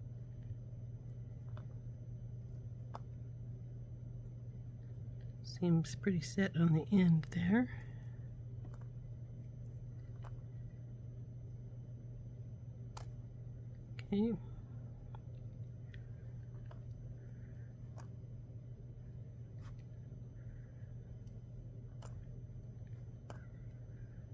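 Small wooden clothespins click softly as they are clipped and unclipped.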